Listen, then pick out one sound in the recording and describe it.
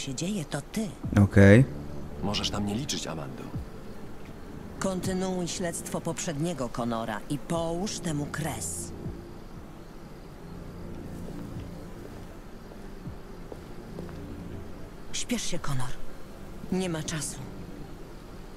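A middle-aged woman speaks calmly and seriously.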